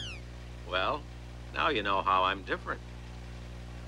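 A man speaks briefly and calmly nearby.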